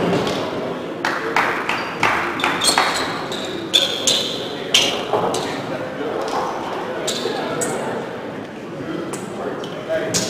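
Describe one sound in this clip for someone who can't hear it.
Sneakers squeak on a court in a large echoing gym.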